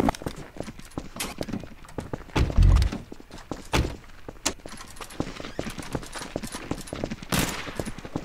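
Footsteps tap quickly on hard pavement.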